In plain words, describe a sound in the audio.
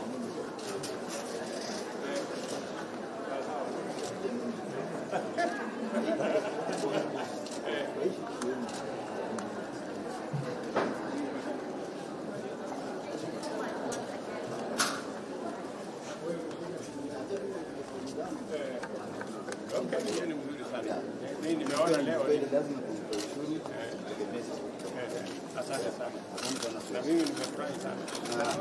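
A crowd of men and women chatter and laugh nearby in an echoing indoor space.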